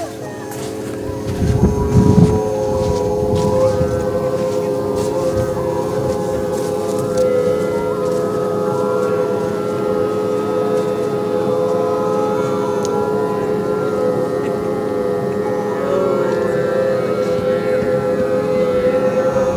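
A group of men and women hum one long steady note together.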